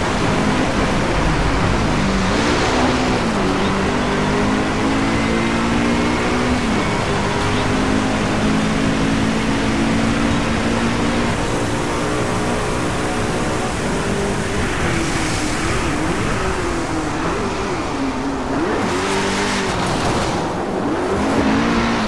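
A sports car engine roars and revs up and down through gear changes.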